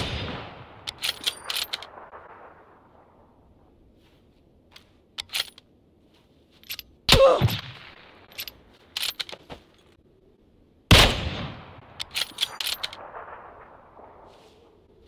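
Rifle shots ring out loudly and echo away.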